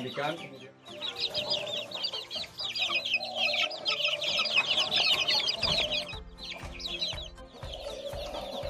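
Young chickens squawk and flap in a cage.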